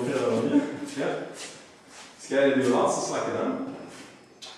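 A young man talks.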